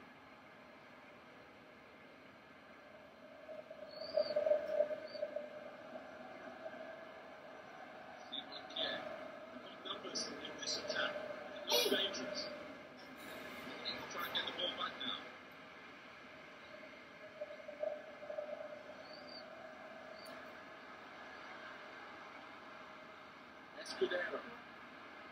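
Stadium crowd noise from a football video game plays through a television's speakers.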